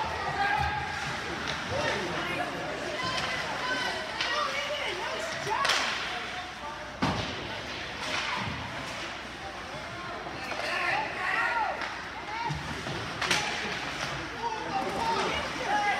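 Ice skates scrape and carve across an ice rink.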